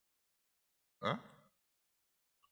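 A man makes a brief questioning sound into a microphone.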